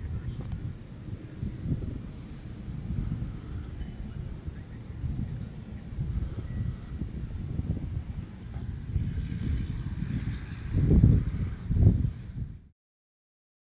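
Wind gusts blow outdoors, rumbling against the microphone.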